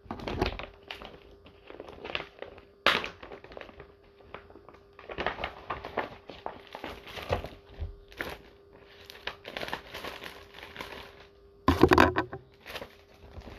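Paper sheets rustle and crinkle.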